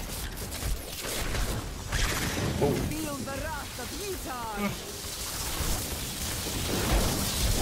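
Magic blasts and spell effects crackle and boom in a fight.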